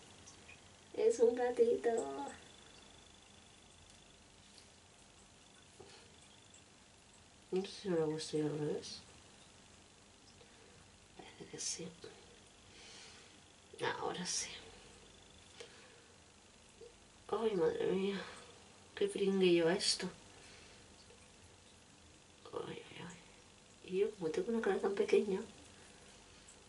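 A middle-aged woman talks calmly and close by, in short bursts.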